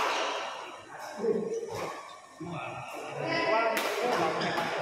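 Shuttlecocks are struck with sharp pops of badminton rackets.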